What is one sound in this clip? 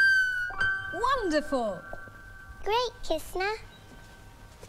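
A woman sings in a high voice.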